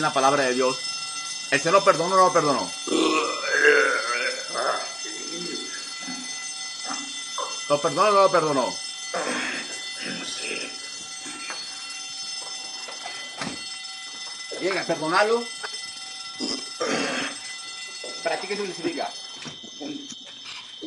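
A young man speaks through tears over an online call.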